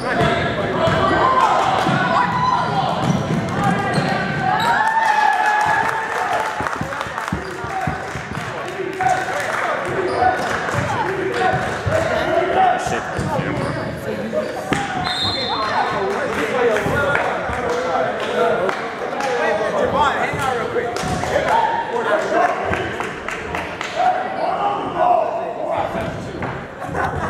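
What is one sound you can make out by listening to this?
A crowd in a large echoing gym cheers and shouts throughout.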